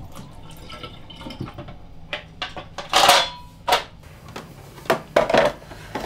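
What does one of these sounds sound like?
A coffee machine whirs and hisses in short bursts.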